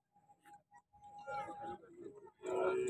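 A crowd of men shout and cheer at a distance outdoors.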